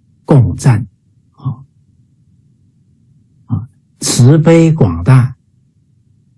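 A man speaks with animation in short bursts over an online call.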